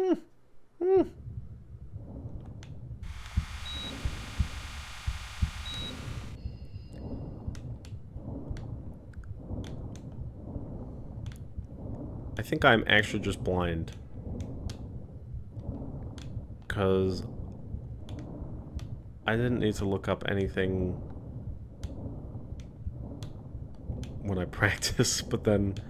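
Water rumbles and burbles in a low, steady drone underwater.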